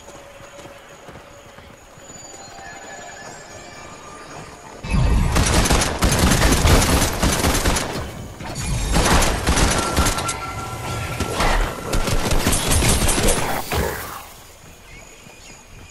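Footsteps crunch quickly over the ground.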